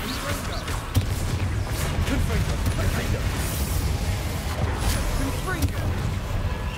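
Spell impacts boom sharply now and then.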